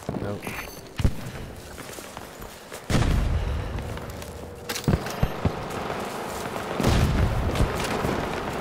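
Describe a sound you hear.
A gun fires loud shots.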